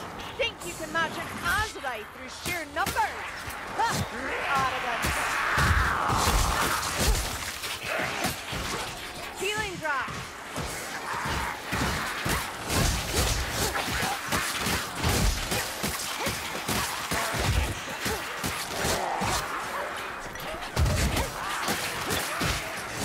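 Rat-like creatures squeal and shriek.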